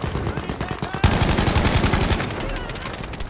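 A submachine gun fires in rapid bursts close by.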